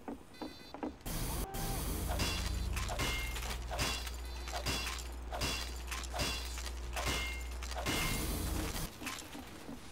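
A wrench clangs repeatedly against a metal machine.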